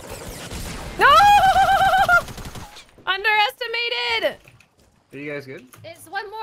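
A young woman speaks loudly and animatedly into a microphone.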